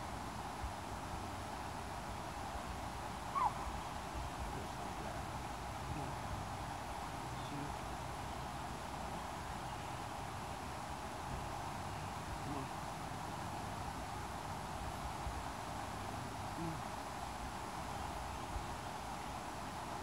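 Water of a stream flows steadily over rocks outdoors.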